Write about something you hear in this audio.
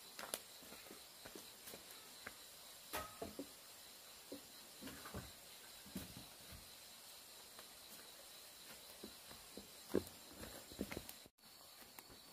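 Footsteps scuff on bare dirt nearby.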